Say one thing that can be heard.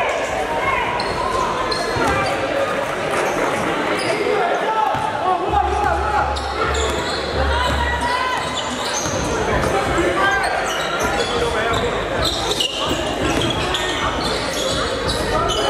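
Sneakers squeak sharply on a wooden court.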